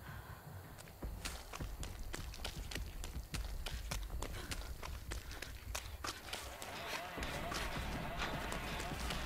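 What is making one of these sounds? Quick footsteps run through rustling grass.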